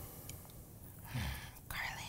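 A spoon scrapes sugar into a glass bowl.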